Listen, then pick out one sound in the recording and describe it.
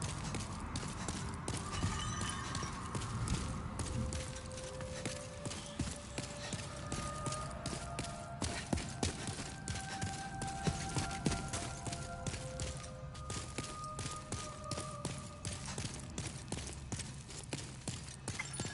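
Armoured footsteps thud quickly on stone.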